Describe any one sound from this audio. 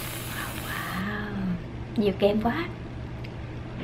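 A woman hums with pleasure close to a microphone.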